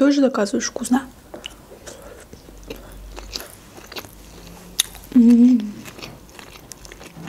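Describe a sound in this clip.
A young woman chews food with soft wet clicks close to a microphone.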